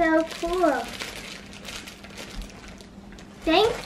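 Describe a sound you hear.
Plastic wrapping crinkles in a girl's hands.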